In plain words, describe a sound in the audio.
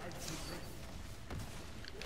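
Fiery blasts burst loudly.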